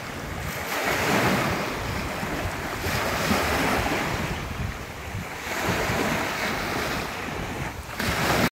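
Small waves wash onto a sandy shore in surges.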